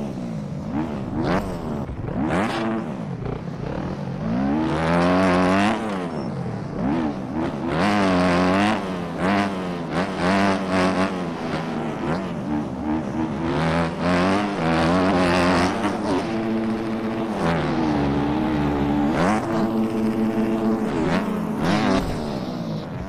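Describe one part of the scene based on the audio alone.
A motorcycle engine revs up and down loudly.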